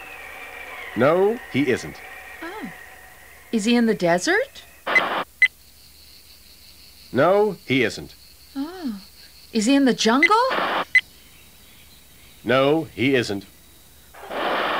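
A woman speaks in a silly cartoonish voice.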